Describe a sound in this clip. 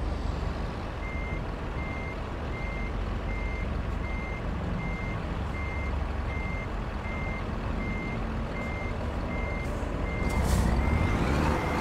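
A truck's reversing alarm beeps at a steady pace.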